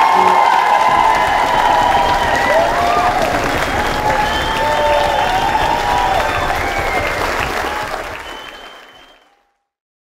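An audience cheers and screams loudly in a large hall, then fades away.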